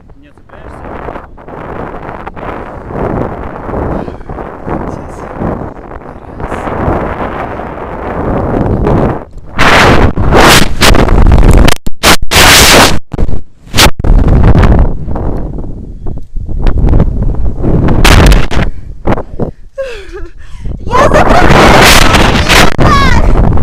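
Strong wind roars and buffets loudly at a great height outdoors.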